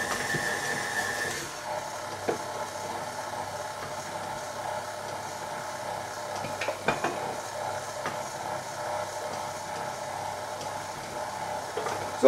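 Dry grains pour softly into a metal bowl.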